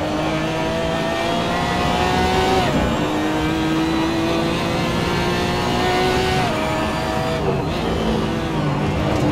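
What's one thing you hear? A racing car engine revs high, rising through the gears and dropping at each shift.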